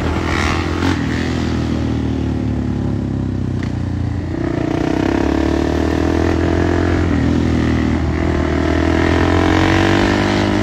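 A dirt bike engine revs loudly and roars close by.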